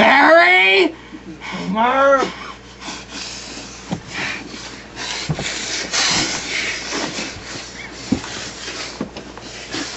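Bodies thump and scuffle on the floor.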